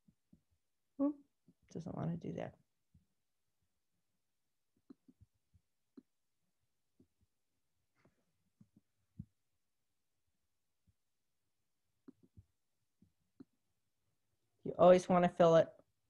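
A woman speaks calmly into a microphone, with long pauses.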